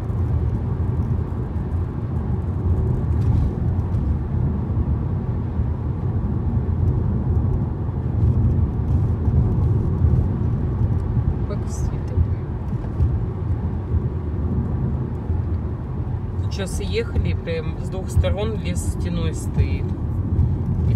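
A car engine hums and tyres rumble steadily on the road from inside the car.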